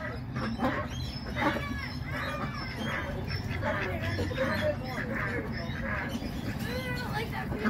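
Ducks quack loudly and repeatedly nearby.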